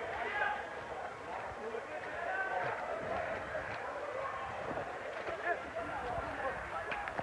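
A crowd of men and women shouts and talks outdoors nearby.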